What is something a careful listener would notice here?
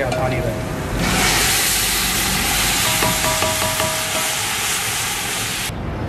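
Food sizzles loudly in hot oil.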